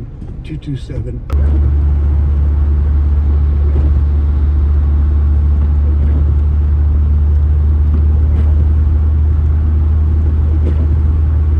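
Windscreen wipers swish across the glass.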